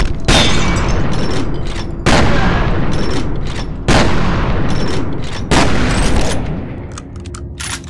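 Explosions boom and roar loudly, one after another, in an echoing corridor.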